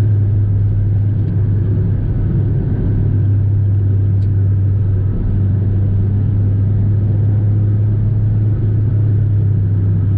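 Tyres roar on the road at speed.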